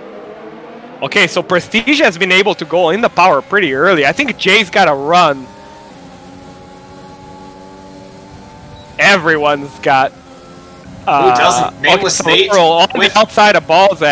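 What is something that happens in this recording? A racing car engine screams loudly up close, rising and falling in pitch as it shifts gears.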